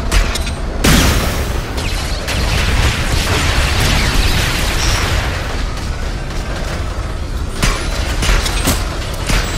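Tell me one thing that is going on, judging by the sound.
A strong wind roars steadily.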